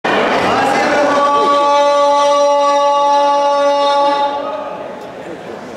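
A young man sings a long held note through a loudspeaker in an echoing hall.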